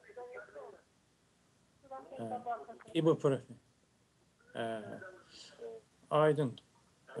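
A man speaks calmly into a microphone, heard over a remote call.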